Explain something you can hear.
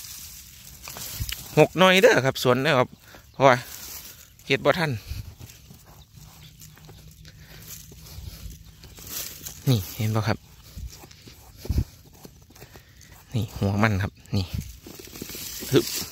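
A hand scrapes and scratches through dry, crumbly soil.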